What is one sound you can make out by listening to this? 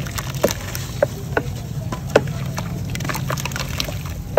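Crumbled chalk pieces splash into water.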